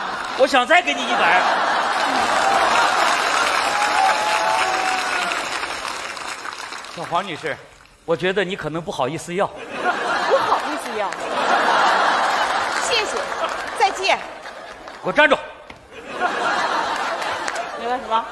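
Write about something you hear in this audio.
A live audience laughs and applauds loudly.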